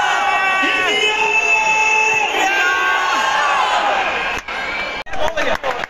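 Young men shout and cheer loudly close by.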